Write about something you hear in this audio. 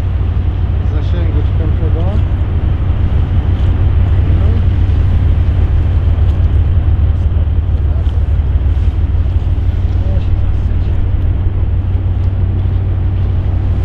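Wind rumbles steadily against the microphone outdoors.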